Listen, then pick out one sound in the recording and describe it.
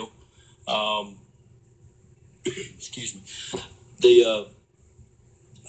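A man speaks into a close microphone in short bursts.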